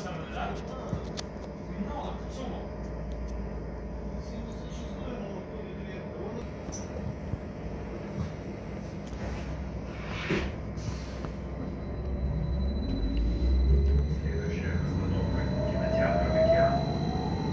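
A bus engine hums and rumbles steadily, rising in pitch as the bus speeds up.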